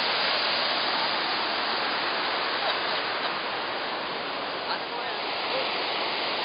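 A river rushes and splashes.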